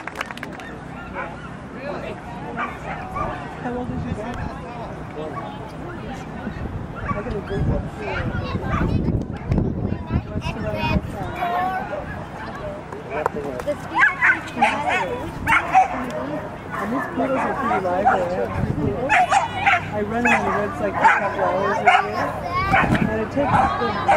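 People chat nearby outdoors.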